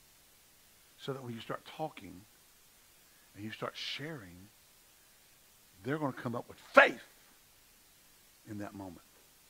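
A middle-aged man speaks with animation through a microphone in short bursts, with pauses between them.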